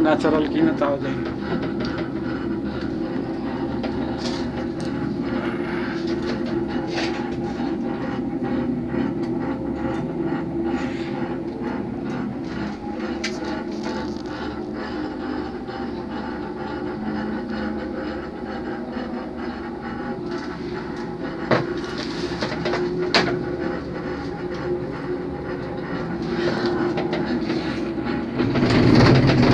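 A cable car cabin hums and rattles steadily as it glides along its cable.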